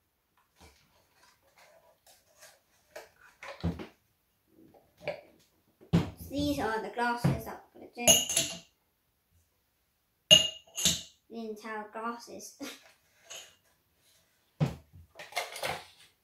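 Glass jars clink and knock on a table.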